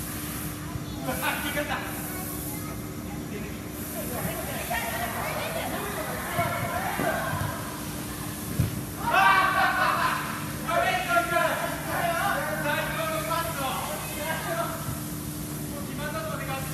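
Young men shout to each other in an echoing indoor hall.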